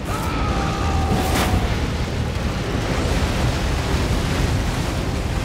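A large burst of fire roars loudly.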